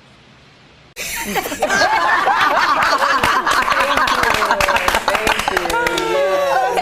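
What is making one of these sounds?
Several women cheer and whoop with excitement.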